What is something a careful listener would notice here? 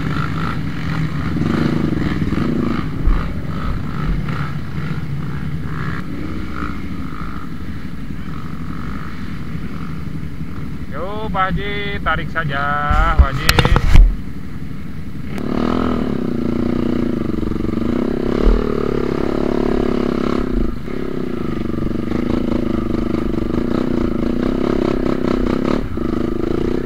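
A motorcycle engine revs and roars close by, rising and falling as the bike climbs a rough trail.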